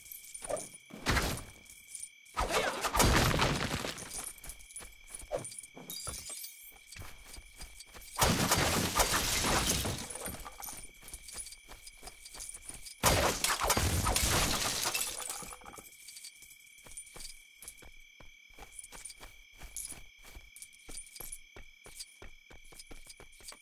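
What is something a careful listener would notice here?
Small studs jingle as they are collected.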